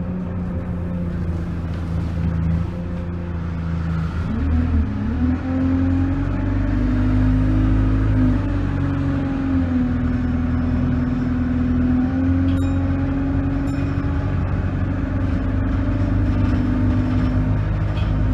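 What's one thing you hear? A bus body rattles and clatters over the road.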